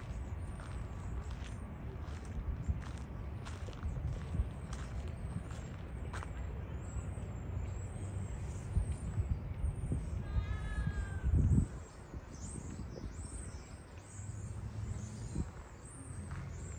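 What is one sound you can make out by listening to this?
Dry reeds rustle in the wind.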